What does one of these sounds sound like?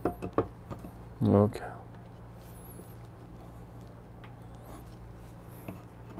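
A coffee tamper knocks and scrapes against a portafilter.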